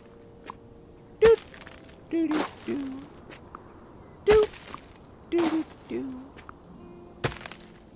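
A watering can sprinkles water on the soil.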